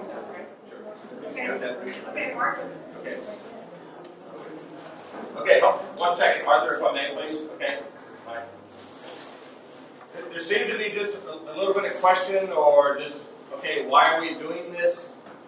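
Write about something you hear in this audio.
A middle-aged man speaks with animation to a group.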